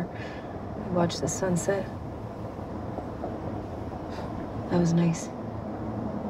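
A young woman speaks quietly nearby.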